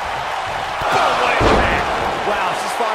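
A body slams heavily onto a wrestling ring mat.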